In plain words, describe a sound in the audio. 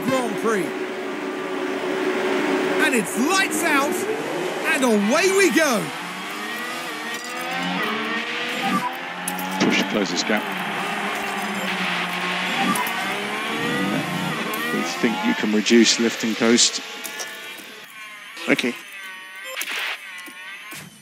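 Formula One car engines wail at high revs, shifting up and down through the gears.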